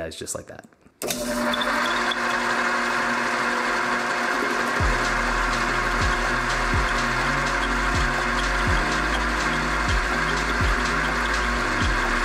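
A metal lathe whirs steadily.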